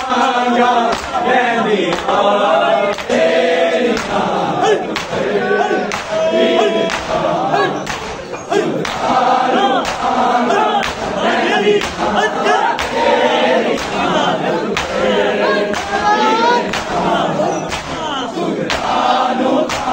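A crowd of men beats their chests in a steady rhythm.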